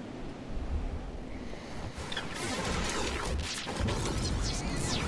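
Wind rushes loudly past during a fast fall.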